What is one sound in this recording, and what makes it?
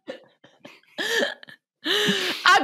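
A young woman laughs with animation into a microphone over an online call.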